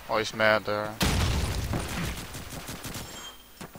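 A grenade explodes with a deep, rumbling boom.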